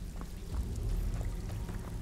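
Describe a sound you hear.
Water drips steadily.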